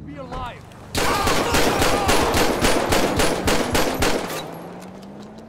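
A pistol fires a rapid string of gunshots.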